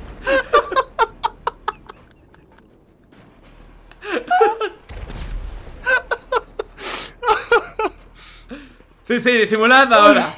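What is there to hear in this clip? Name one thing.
A young man talks and laughs with animation close to a microphone.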